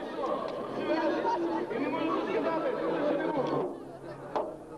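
A large crowd sings loudly together outdoors.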